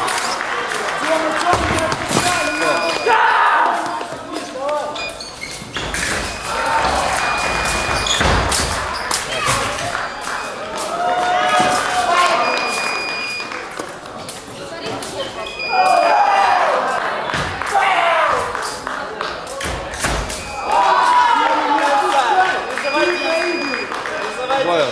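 Men talk and shout across a large echoing hall.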